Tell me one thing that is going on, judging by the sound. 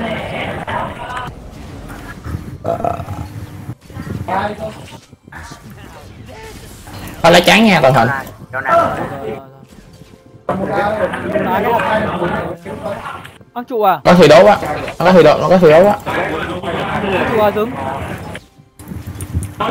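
Game spell effects and weapon hits clash during a fight.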